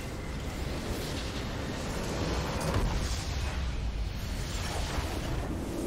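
A large structure explodes with a loud boom.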